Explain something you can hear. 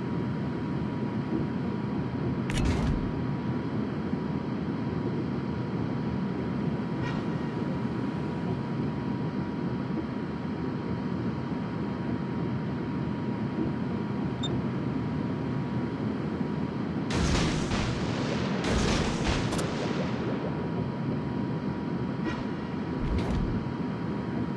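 A ship's engine rumbles steadily over the sea.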